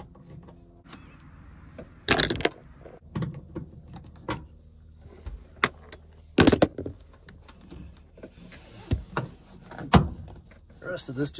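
A plastic latch clicks and snaps under a hand.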